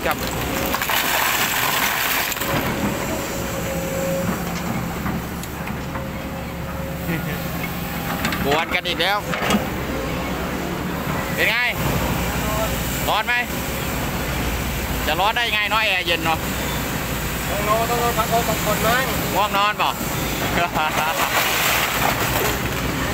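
A diesel excavator engine rumbles.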